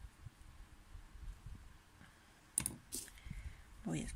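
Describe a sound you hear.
A crochet hook taps lightly as it is picked up and set down.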